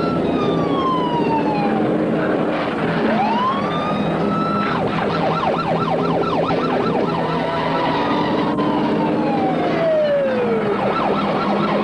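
A siren wails and rises and falls in pitch.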